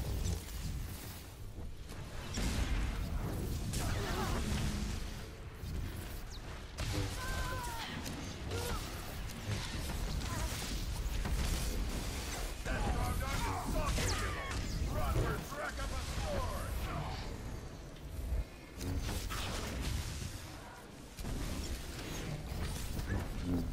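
Energy weapons and blades clash in a battle, with bursts and crackles.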